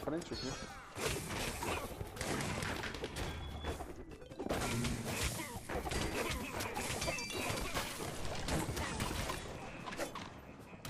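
Weapons clash and strike repeatedly in a fast fight.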